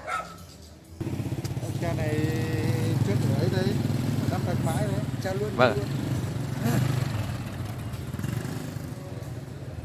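A motorbike engine rumbles past close by.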